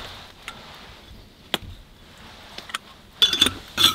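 Metal clinks as a grinder is lifted from a glass jar.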